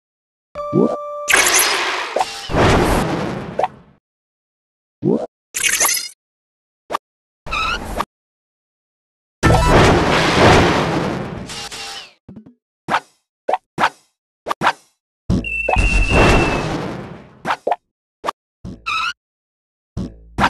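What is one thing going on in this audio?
Cartoon whooshes and zaps sound as racers dash along.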